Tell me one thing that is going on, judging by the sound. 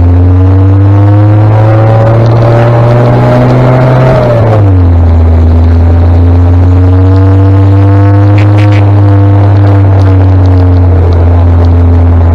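A motorcycle engine drones steadily close by and drops in pitch once as the gear changes.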